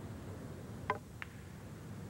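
A cue stick strikes a billiard ball with a sharp click.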